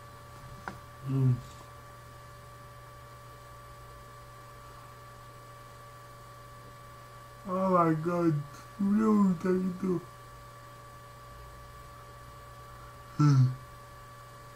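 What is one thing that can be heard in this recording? A young man speaks briefly and quietly close to a microphone, in short bursts.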